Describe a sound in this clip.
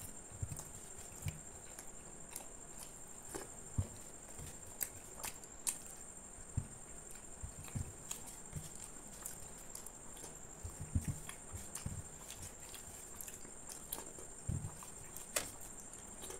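Fingers squish and scrape through wet food on a plate.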